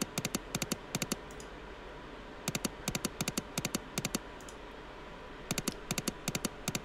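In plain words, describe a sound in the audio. Electronic slot reels spin and stop with rapid bursts of sharp clicks.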